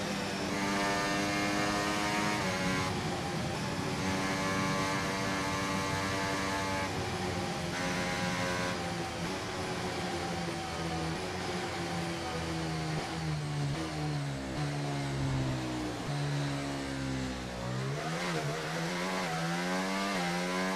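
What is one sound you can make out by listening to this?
A racing car engine whines steadily at high revs, then drops in pitch as the car slows and shifts down through the gears.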